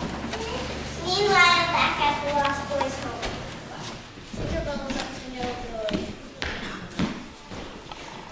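Children sing together in a large echoing hall.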